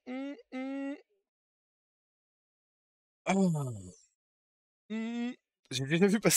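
A man speaks playfully through a microphone in short, drawn-out bursts.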